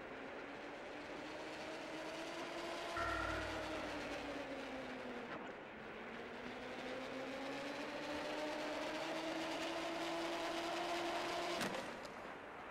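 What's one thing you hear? A pulley whirs along a cable, its pitch slowly rising and falling.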